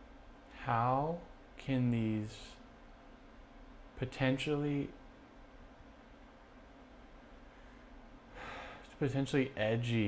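A man speaks slowly and calmly in short phrases, close to a microphone.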